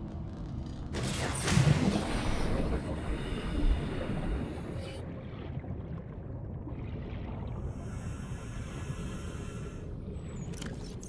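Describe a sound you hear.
Muffled underwater bubbling and rumbling goes on steadily.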